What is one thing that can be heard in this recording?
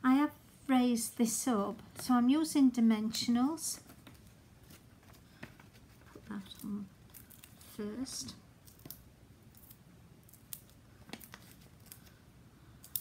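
Paper rustles and folds.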